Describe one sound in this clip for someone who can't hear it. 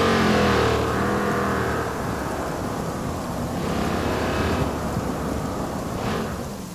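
Tyres screech on the road.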